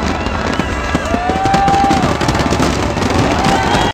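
A crowd cheers loudly.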